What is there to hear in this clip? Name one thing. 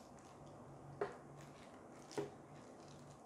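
A few sharp knocks sound as a hand handles a lamp.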